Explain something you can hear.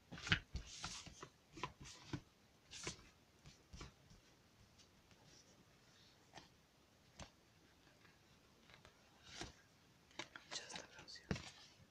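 Playing cards slide and tap against each other.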